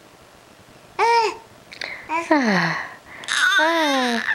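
A baby squeals and babbles with high, rising and falling cries close by.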